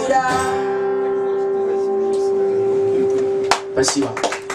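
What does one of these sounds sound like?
A young man sings a long held note into a microphone.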